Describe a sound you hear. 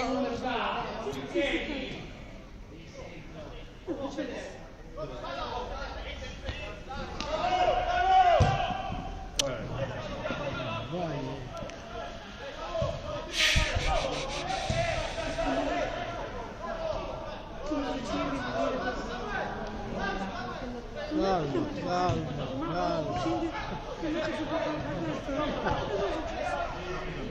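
Football players shout and call to each other across an open outdoor pitch.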